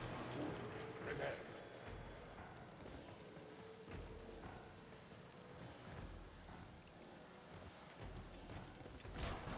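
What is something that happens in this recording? A game character's jetpack whooshes and roars.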